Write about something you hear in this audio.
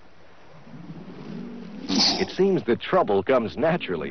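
A bear and a tiger roar as they fight.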